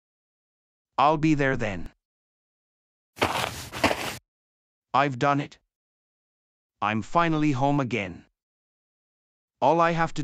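A young man speaks calmly and clearly, close to a microphone.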